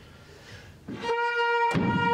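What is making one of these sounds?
A trumpet plays a loud, steady note.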